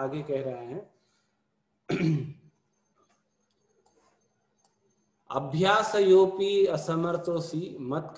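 An elderly man speaks calmly through a microphone on an online call, with pauses.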